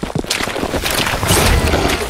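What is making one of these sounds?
A blade slashes through the air.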